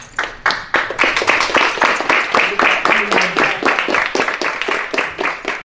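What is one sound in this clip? A group of people clap their hands in a quick, steady rhythm.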